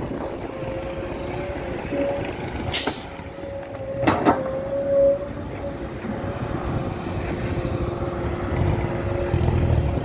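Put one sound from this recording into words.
An excavator engine drones steadily.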